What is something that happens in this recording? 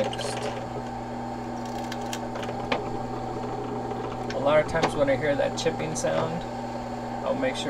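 A drill press motor hums steadily.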